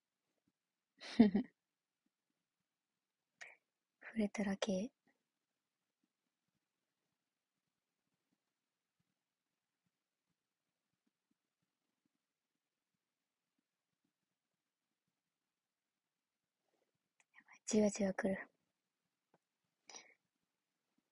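A young woman speaks softly in short bursts close to a microphone.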